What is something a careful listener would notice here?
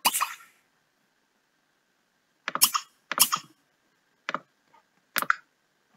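Short game clicks and chimes sound.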